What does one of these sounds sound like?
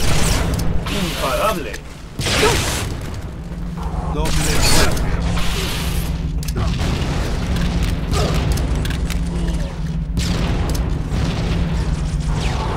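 Plasma weapon shots fire and hiss.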